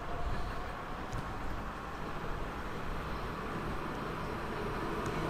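An electric train approaches with a steady rumble along the tracks.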